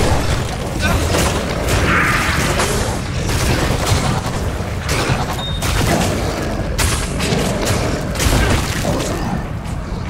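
Lava roars and bubbles steadily.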